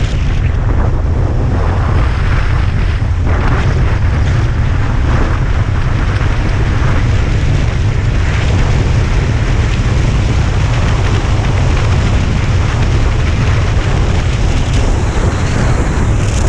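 Wind buffets loudly against a moving rider.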